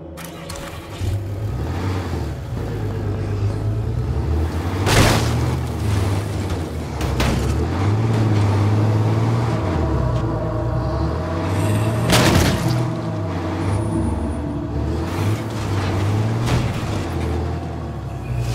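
A truck engine rumbles and revs as it drives.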